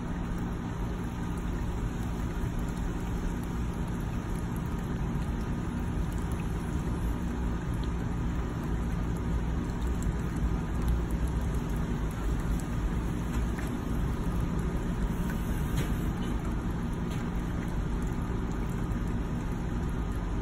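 Light rain patters softly on still water outdoors.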